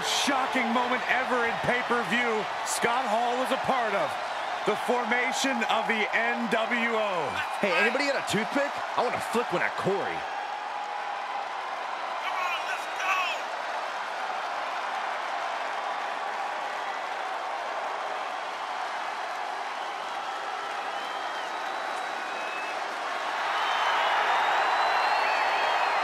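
A large crowd cheers and roars steadily, swelling louder near the end.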